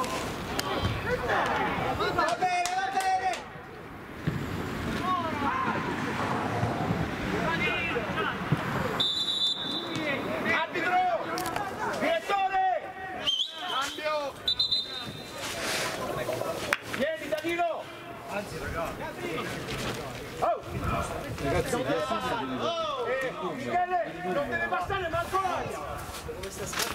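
Young players shout and call to each other across an open pitch outdoors.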